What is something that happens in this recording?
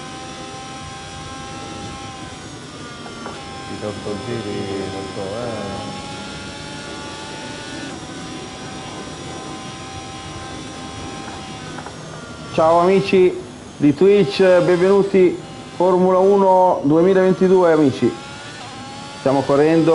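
A racing car engine whines at high speed and changes pitch with gear shifts.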